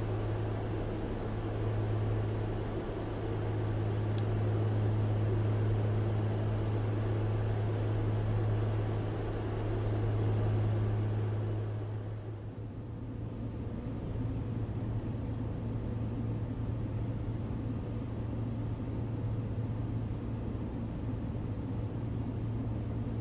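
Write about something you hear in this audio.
A small propeller plane's engine drones steadily, changing tone slightly partway through.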